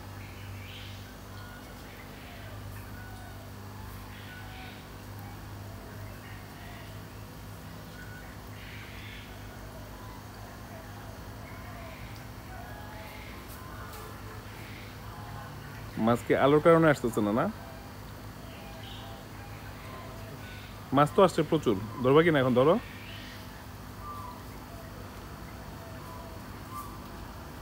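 Water bubbles and splashes softly in a tank.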